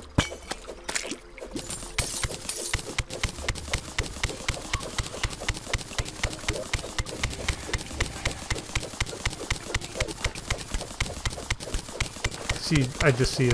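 A pickaxe chips rapidly and steadily at stone blocks.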